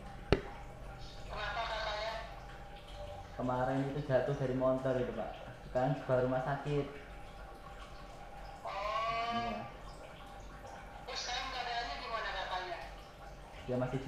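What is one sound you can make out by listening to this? A young man talks on a phone nearby.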